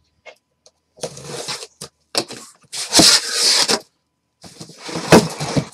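Packing tape rips as a box is opened.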